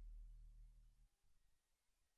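Fingers tap softly on rubber pads.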